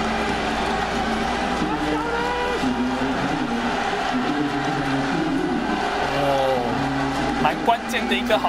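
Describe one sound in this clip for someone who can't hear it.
A middle-aged man shouts angrily up close.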